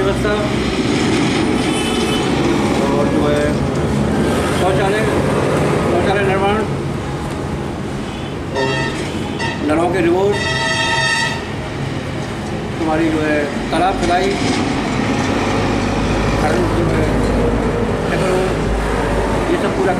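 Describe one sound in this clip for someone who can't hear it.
A middle-aged man speaks calmly and close by.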